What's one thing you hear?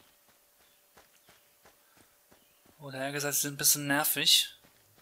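Footsteps run steadily over grass.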